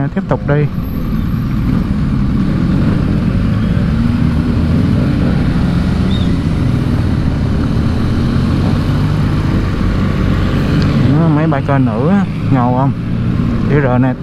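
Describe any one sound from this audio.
Wind rushes past in a steady roar.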